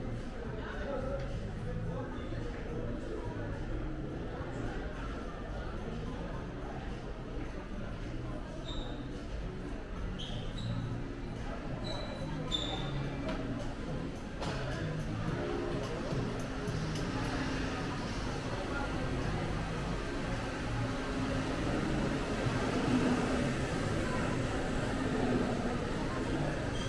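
Crowd chatter murmurs through a large echoing hall.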